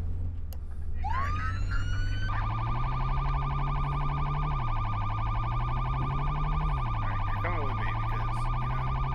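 A police siren rises and wails steadily.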